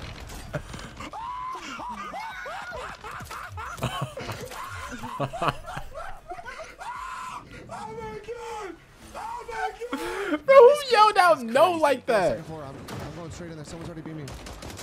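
A young man shouts excitedly into a headset microphone.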